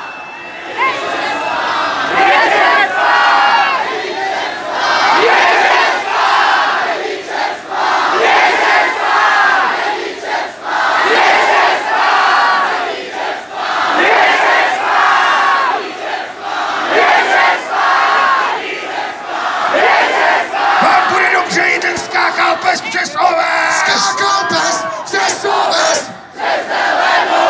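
A man sings loudly through a microphone.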